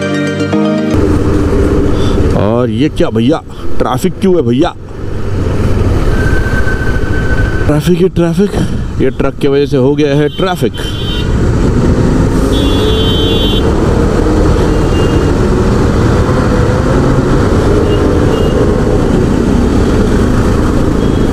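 Traffic rumbles on a busy road.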